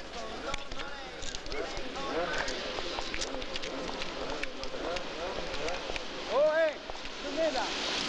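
A man talks and laughs cheerfully close by.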